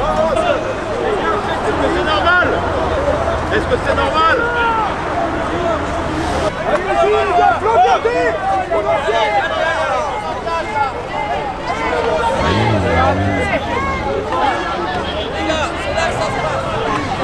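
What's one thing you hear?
A crowd of men and women shout and chant loudly outdoors.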